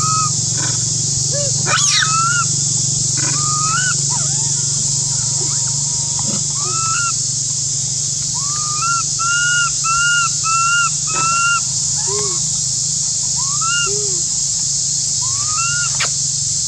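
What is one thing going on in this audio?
A baby monkey squeals and cries repeatedly in high, wavering calls.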